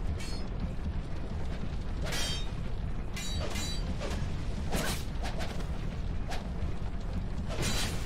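Swords clash and strike in sharp blows.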